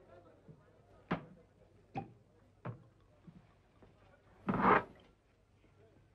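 A bottle clinks against a glass.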